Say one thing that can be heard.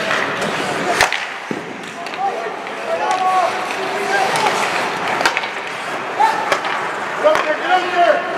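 Hockey sticks crack sharply against a puck.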